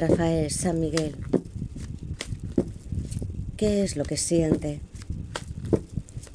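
Playing cards shuffle and riffle with soft flicking clicks.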